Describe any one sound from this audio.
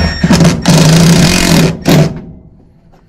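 A cordless drill whirs loudly.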